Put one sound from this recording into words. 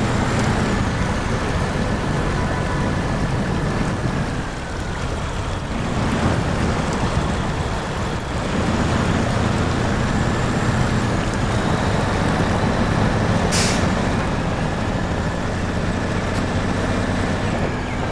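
A heavy truck engine rumbles and strains steadily.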